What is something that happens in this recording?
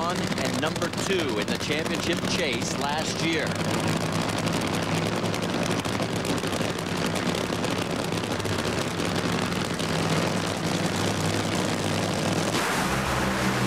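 A drag racing engine rumbles and crackles loudly.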